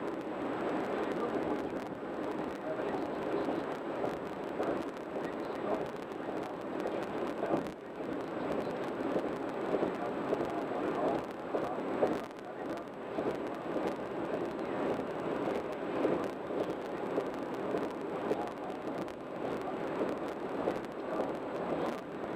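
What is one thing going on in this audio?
Tyres roar steadily on a highway from inside a moving car.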